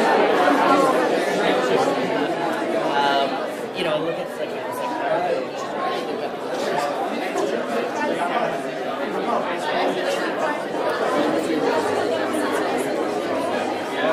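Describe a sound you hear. A crowd of men and women chatters loudly in a busy room.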